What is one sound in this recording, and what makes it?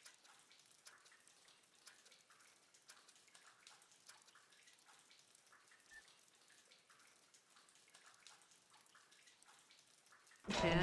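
Soft clicks of a game menu tick now and then.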